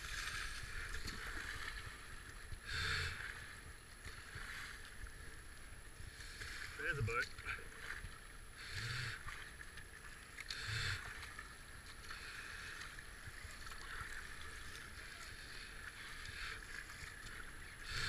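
Rapids rush and churn around a kayak.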